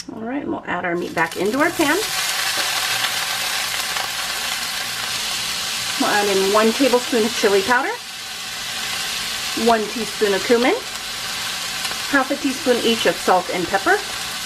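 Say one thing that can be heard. Ground meat sizzles in a hot pan.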